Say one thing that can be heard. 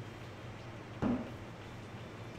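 A cardboard box thumps once as it is handled.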